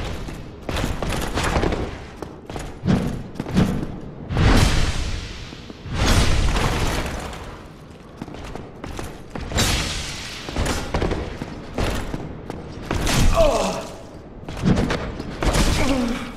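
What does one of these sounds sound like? Heavy metal weapons clash and strike in a fight.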